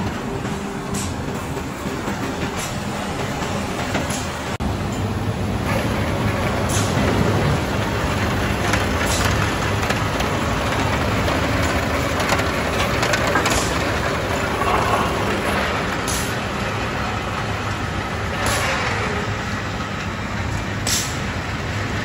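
Metal clanks sharply now and then.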